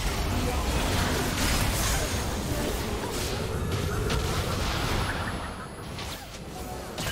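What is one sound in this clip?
Game spell effects burst and whoosh in quick succession.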